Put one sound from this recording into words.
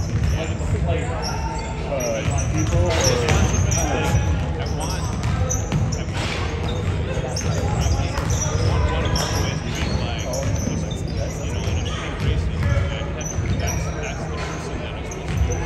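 Young players call out to each other, echoing.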